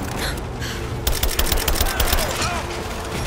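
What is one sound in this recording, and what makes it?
Rifle shots fire in a rapid burst.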